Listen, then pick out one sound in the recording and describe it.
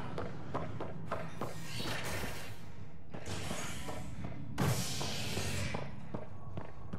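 A sliding door opens with a loud hiss.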